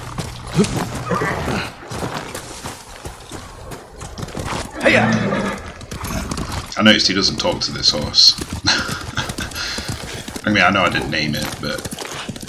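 A horse gallops, its hooves thudding on snow.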